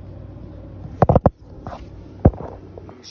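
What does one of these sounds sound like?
Hard objects knock sharply a few times as they are handled.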